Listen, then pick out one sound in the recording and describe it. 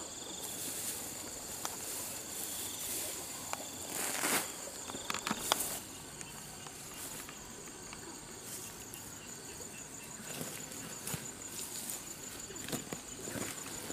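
Grass rustles and tears as it is pulled from soil.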